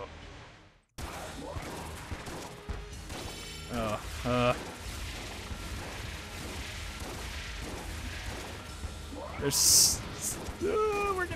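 Electronic gunshots and blasts crackle rapidly.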